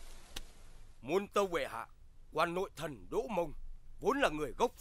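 A man speaks forcefully and with emotion, close by.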